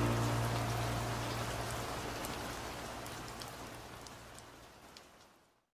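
Rain patters steadily against a window pane and slowly fades.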